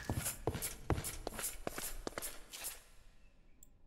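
Footsteps tread on stone in a video game.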